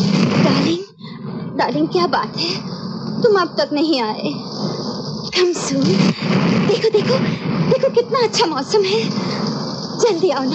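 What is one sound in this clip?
A young woman speaks urgently into a telephone, close by.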